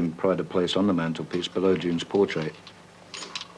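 A woman speaks calmly, close by.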